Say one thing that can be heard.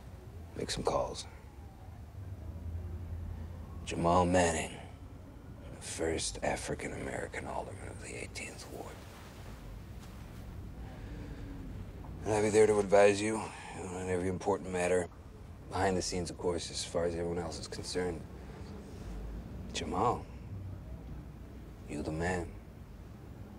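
A man speaks calmly and earnestly nearby.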